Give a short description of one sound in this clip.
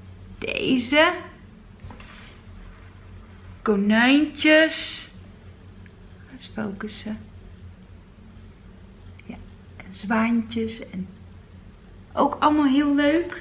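A middle-aged woman talks calmly and with animation, close by.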